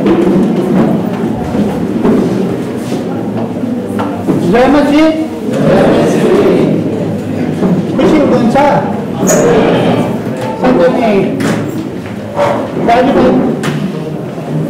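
A middle-aged man speaks with feeling into a microphone in an echoing hall.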